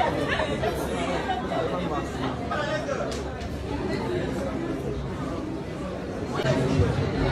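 A crowd of people chatters and murmurs nearby.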